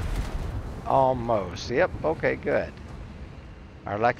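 A shell explodes on a distant ship with a dull boom.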